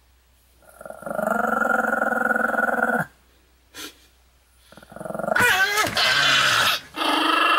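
A small dog howls in long, wavering cries.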